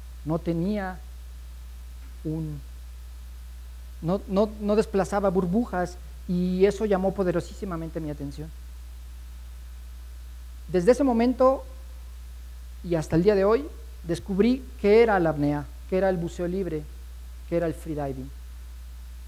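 A man speaks with animation through a microphone.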